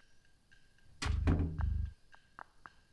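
A wooden cupboard door bumps shut.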